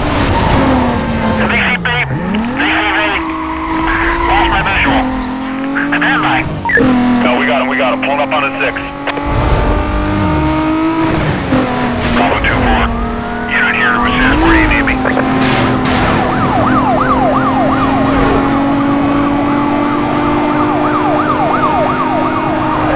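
A racing car engine roars and revs up and down with gear changes.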